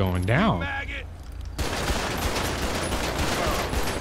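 A pistol fires.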